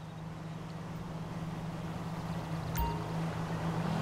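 A car engine hums as a car approaches, growing louder.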